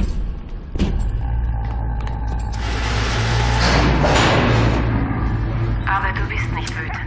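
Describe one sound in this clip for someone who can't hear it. An elevator hums and rumbles low and steady as it moves.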